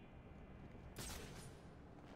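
A grappling hook fires with a sharp snap.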